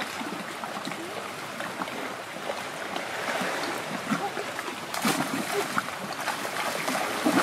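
Shallow water laps gently against rocks.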